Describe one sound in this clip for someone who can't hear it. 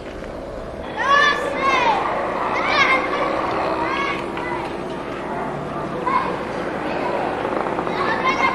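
Children shout and laugh while playing outdoors.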